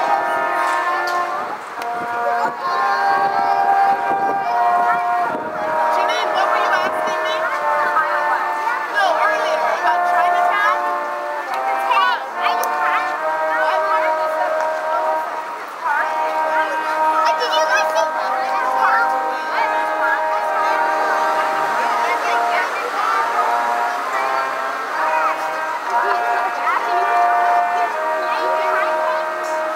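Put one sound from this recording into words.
A brass quartet plays a lively tune outdoors.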